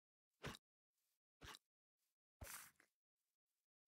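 Quick blows strike a creature.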